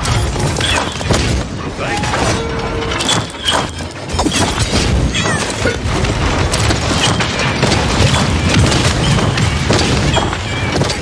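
Cartoon bombs explode with sharp bangs.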